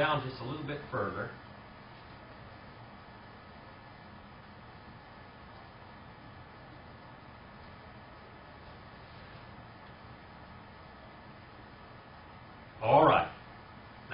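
A middle-aged man speaks calmly, with long pauses.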